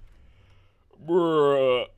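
A man shouts loudly into a close microphone.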